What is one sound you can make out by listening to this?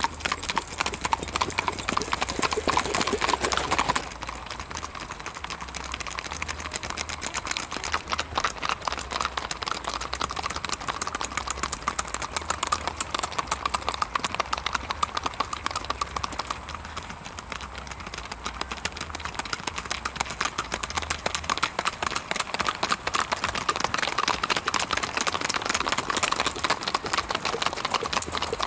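Horse hooves clop steadily as horses walk past.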